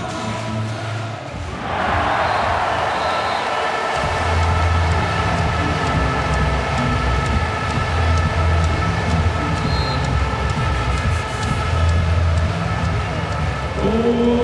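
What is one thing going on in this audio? A large crowd cheers and chants loudly in a big echoing hall.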